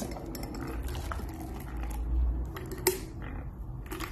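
A liquid pours into a glass.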